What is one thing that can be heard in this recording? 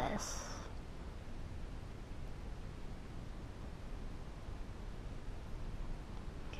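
Thick paint pours slowly from a plastic cup into a small cup.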